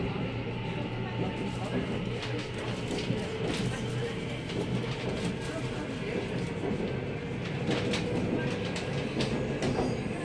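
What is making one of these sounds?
The doors of a subway car rattle and clatter as the train moves.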